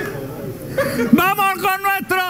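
A man laughs and shouts loudly.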